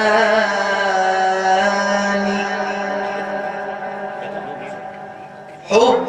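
An elderly man sings a long, drawn-out melody through a microphone.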